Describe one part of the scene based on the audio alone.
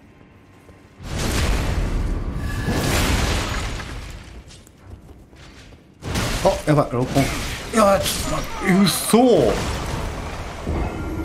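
Heavy metal blades clash and strike in a fight.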